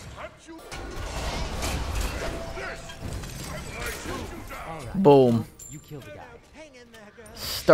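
Magical blasts whoosh and crackle during a fight.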